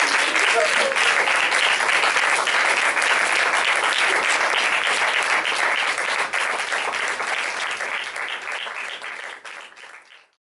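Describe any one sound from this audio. An audience claps and applauds loudly in a room, and the applause slowly fades.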